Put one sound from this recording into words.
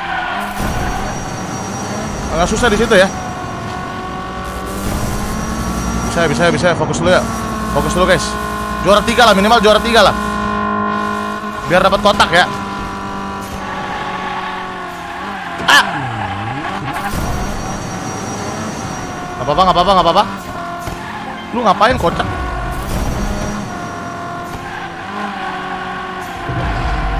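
A racing car engine hums and whines steadily.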